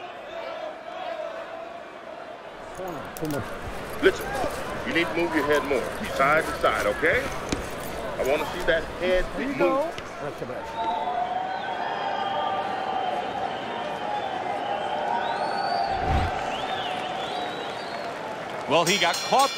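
A large crowd murmurs and cheers in a big arena.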